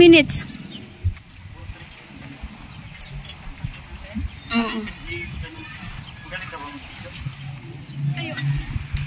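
A man and a woman talk casually nearby outdoors.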